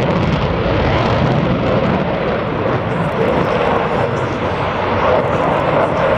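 A jet engine roars loudly and steadily overhead.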